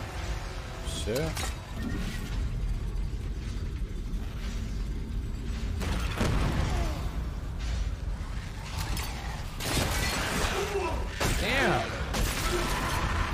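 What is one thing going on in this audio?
A young man talks into a close microphone, now and then with animation.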